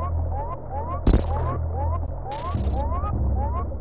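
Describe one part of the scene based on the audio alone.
Two bursts of a harsh electronic buzz ring out.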